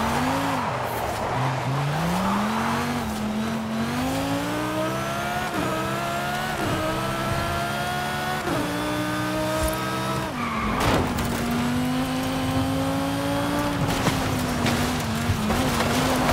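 A sports car engine roars, revving up through the gears with sharp shifts.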